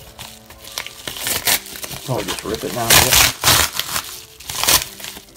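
A padded envelope crinkles and rustles as it is handled.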